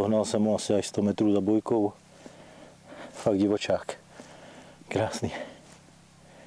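A man talks close by, calmly and with animation.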